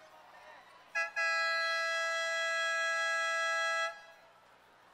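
A buzzer sounds with a long steady blare.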